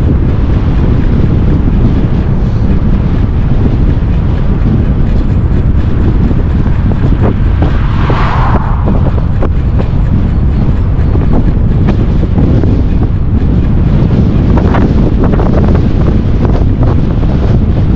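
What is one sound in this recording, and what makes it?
Wind rushes loudly past while riding outdoors.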